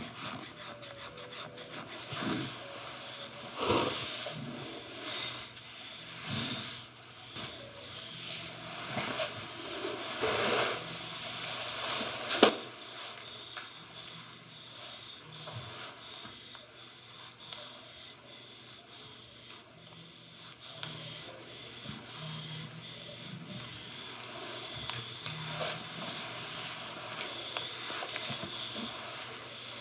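Wooden sticks rub and slide over skin with soft swishing strokes.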